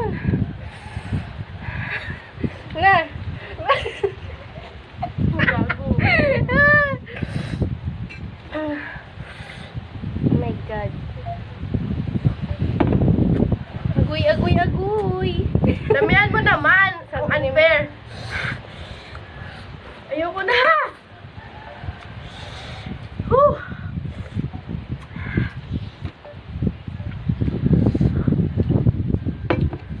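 Two young women talk with animation close by.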